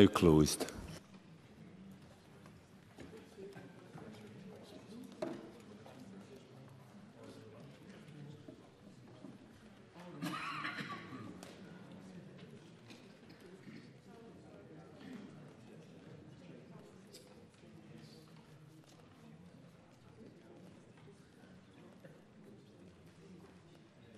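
Low murmuring and shuffling fill a large, quiet chamber.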